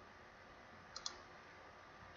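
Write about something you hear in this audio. A computer mouse clicks once.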